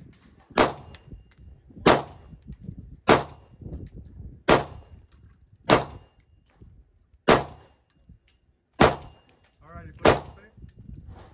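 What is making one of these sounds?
A rifle fires single shots outdoors at a steady pace, each crack echoing briefly.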